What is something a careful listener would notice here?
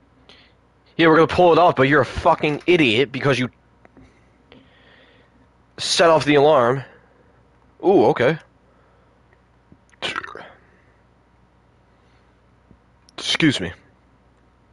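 A man speaks urgently and loudly in short bursts.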